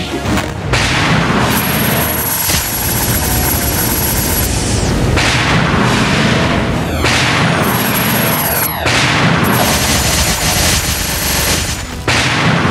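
Magical blasts whoosh and crackle loudly in bursts.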